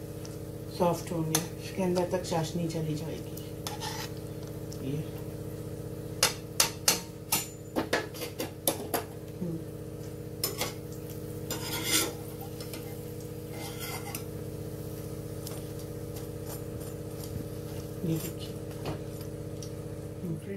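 Hot oil sizzles steadily in a pan.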